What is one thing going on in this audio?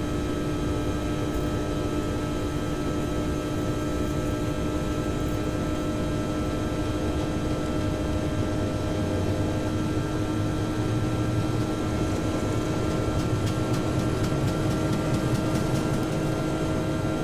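Jet engines whine and roar steadily.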